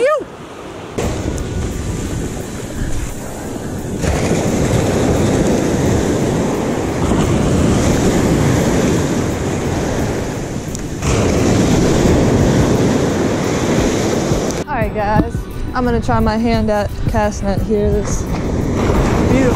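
Waves crash and wash up on the shore.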